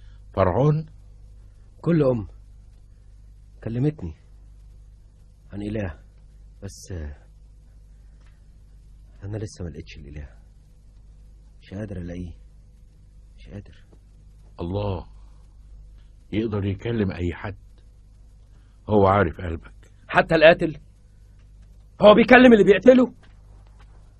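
A man speaks slowly in short, tense phrases, close by.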